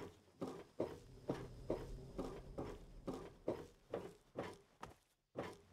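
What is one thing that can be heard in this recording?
Footsteps thud steadily on a metal floor.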